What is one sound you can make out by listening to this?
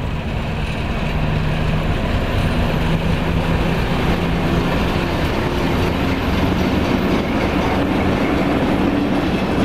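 Train wheels clatter and grind over the rails.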